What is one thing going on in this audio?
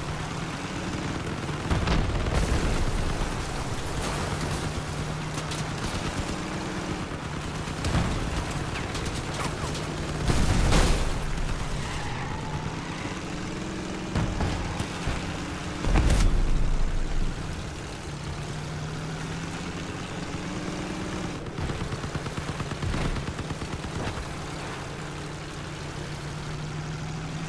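A heavy vehicle engine rumbles and revs steadily throughout.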